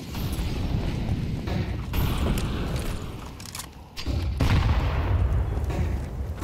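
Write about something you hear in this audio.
A smoke grenade hisses as smoke pours out.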